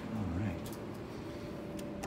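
An elevator call button clicks.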